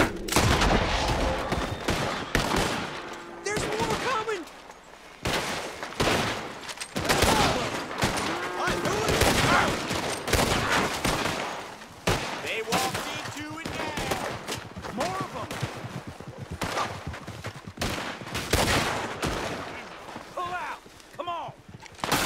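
Rifle shots ring out again and again, with echoing cracks.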